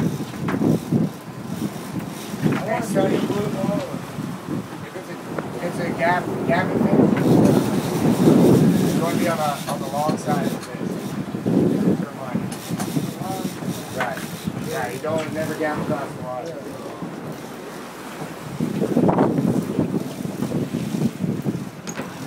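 Men talk and shout excitedly close by.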